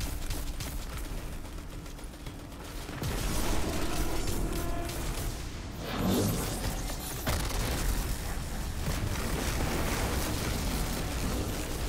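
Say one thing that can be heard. Electric blasts crackle and boom.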